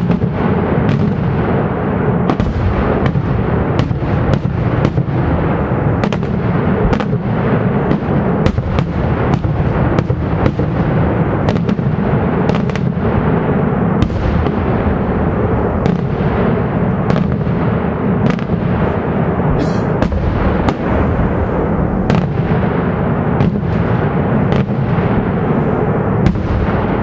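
Fireworks bang and crackle in rapid bursts at a distance.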